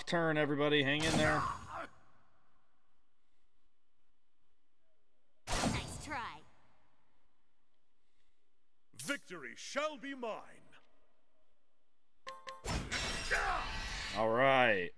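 Sword strikes and magic bursts crash in a video game battle.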